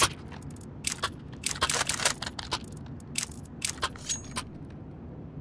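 Menu buttons click several times in quick succession.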